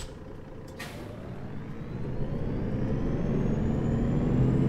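A bus engine revs up rising in pitch as the bus pulls away.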